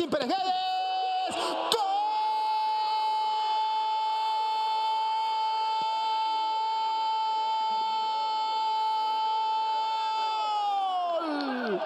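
A young man shouts loudly in celebration.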